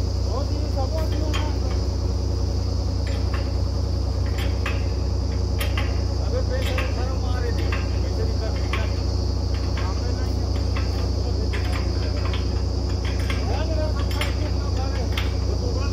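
Metal clanks sharply on metal at the drill rig.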